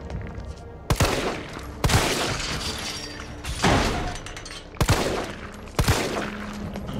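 Gunshots ring out in sharp, repeated bangs.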